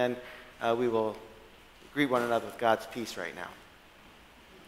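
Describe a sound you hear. A man speaks loudly through a microphone in an echoing hall.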